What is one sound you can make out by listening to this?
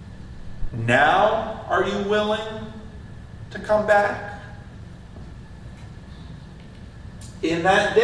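An elderly man preaches with animation through a microphone in a large echoing hall.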